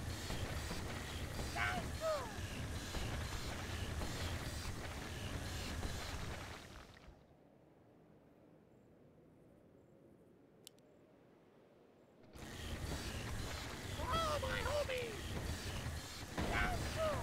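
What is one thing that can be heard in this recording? Weapons clash and creatures cry out in a noisy battle.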